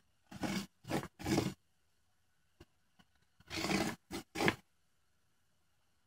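A pen scratches across a foam board.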